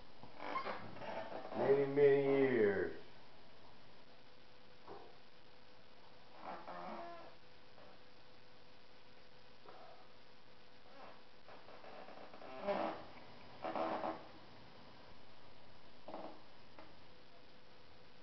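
A brush dabs and scrapes across a stiff surface.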